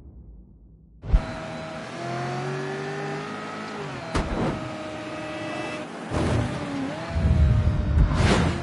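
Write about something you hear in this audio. A car engine roars and revs up as the car speeds along.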